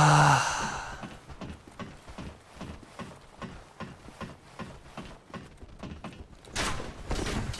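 Footsteps knock steadily on ladder rungs.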